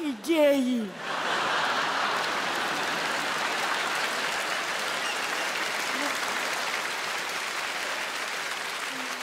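A large audience laughs and applauds loudly.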